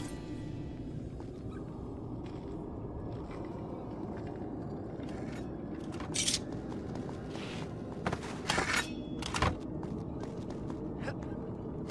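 Footsteps patter and scuff on a stone floor.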